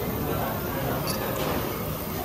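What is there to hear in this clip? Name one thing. Small glasses clink together in a toast.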